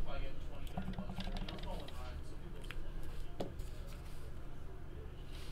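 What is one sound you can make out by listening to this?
Paper cards rustle and slide between fingers.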